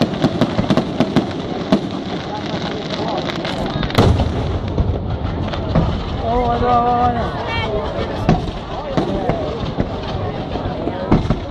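Fireworks explode with loud booms.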